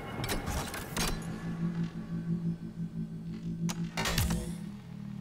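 A panel chimes when a hand presses it.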